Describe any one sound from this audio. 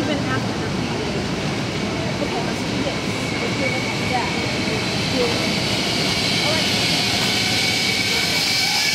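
Zip line trolleys whir steadily along a steel cable, growing louder.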